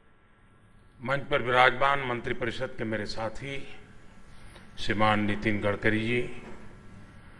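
An elderly man speaks calmly into a microphone in a large hall.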